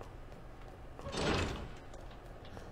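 A heavy door bangs open.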